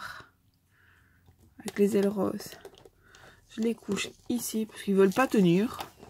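Small plastic toys tap and click as they are set down on a hard surface.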